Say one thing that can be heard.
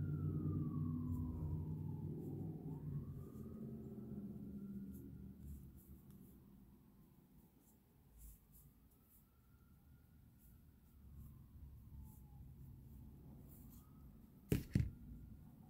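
A crochet hook softly pulls yarn through stitches.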